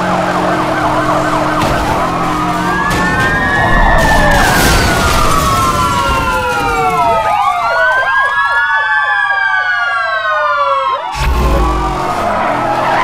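Police sirens wail nearby, swooping up and down.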